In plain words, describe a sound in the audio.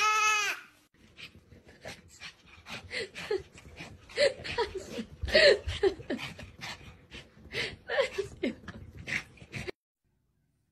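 A baby babbles and squeals nearby.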